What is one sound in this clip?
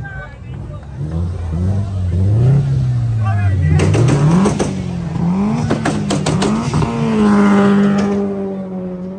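A car engine revs hard, rising and falling repeatedly.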